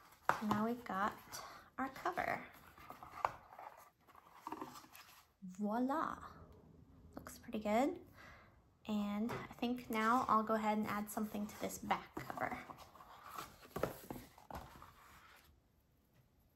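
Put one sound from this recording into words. Paper and card rustle as they are handled.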